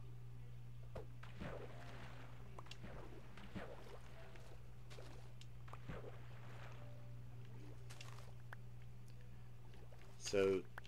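Water swishes and bubbles as a swimmer moves underwater.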